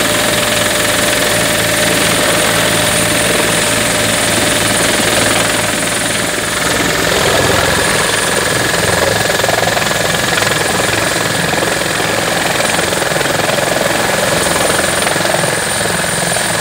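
A helicopter's rotor thumps loudly close by.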